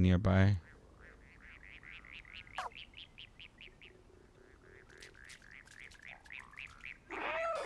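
A small robot chirps in quick, rapid electronic beeps.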